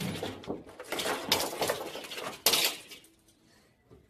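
Plastic toys clatter and tumble onto the floor.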